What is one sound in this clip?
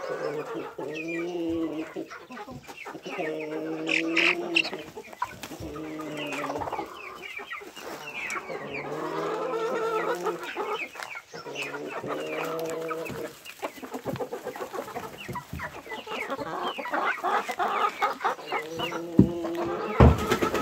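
Hens cluck and croon close by.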